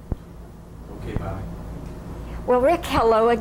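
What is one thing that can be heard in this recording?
A woman laughs softly nearby.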